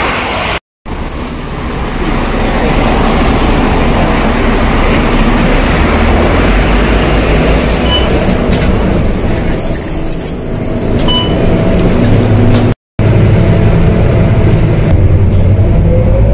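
A bus engine rumbles steadily nearby.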